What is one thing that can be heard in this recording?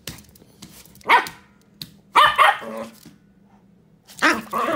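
A small dog barks sharply close by.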